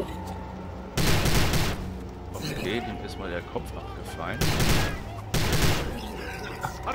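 A gun fires in loud, roaring bursts.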